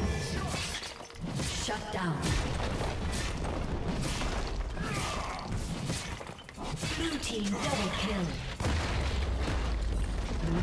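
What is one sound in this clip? Video game combat effects clash, slash and burst in quick succession.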